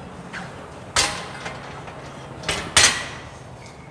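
A barbell clanks onto a metal rack.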